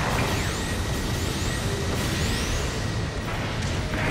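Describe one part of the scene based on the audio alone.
A beam sword hums and swings.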